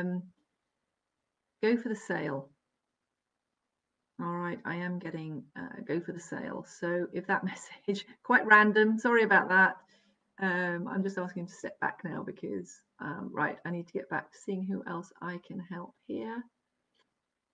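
A middle-aged woman speaks calmly and closely into a microphone, as if on an online call.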